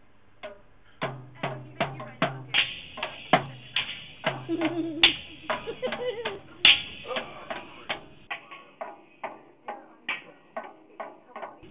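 A young child bangs rapidly on a toy drum kit.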